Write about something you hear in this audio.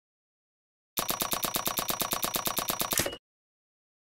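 Coins tick quickly as a counter tallies up, ending in a chime.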